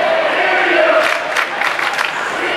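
Ice hockey sticks clack against a puck.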